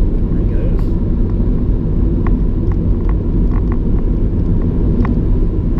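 A car's engine rumbles steadily while driving.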